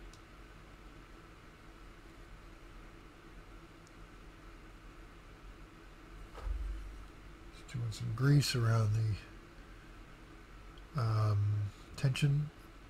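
A small brush scrapes lightly on a plastic model.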